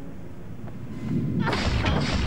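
Blows land in a scuffle.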